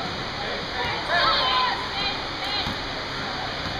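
Children shout and cheer loudly.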